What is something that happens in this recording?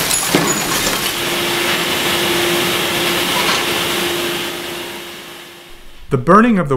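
A grab bucket drops a load of waste with a loud rumbling rush.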